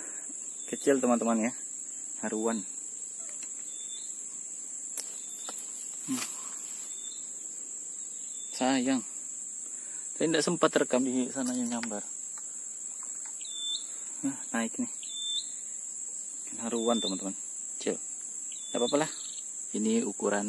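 A man talks calmly and close by, in short bursts.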